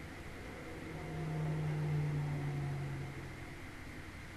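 A young woman hums briefly and softly into a close microphone.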